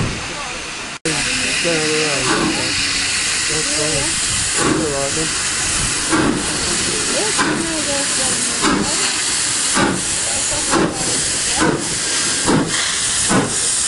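A steam locomotive chuffs in a steady rhythm as it pulls away.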